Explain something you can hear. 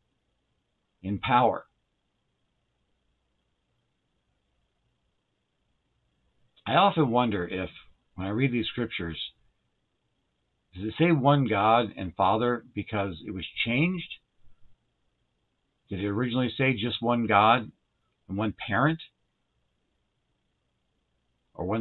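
A man speaks calmly into a microphone close by, with long pauses.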